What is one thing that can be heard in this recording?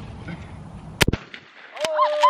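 A shotgun fires a single loud blast outdoors.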